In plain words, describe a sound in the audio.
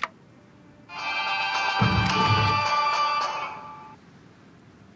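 A bright chime of notes rings out.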